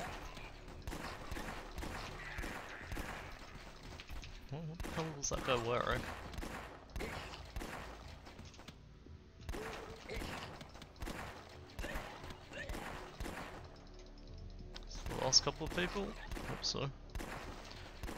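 Gunshots crack again and again.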